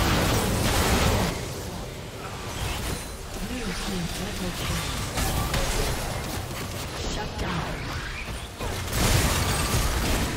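Magic blasts and impacts crackle and boom in a fast fantasy battle.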